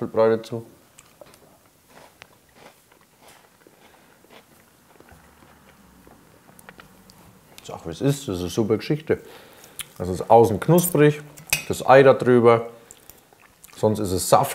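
Cutlery clinks and scrapes against plates.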